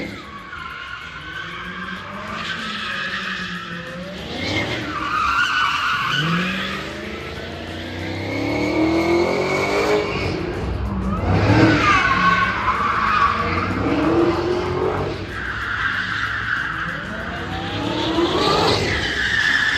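Tyres squeal loudly on pavement.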